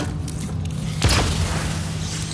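Electricity crackles and zaps loudly.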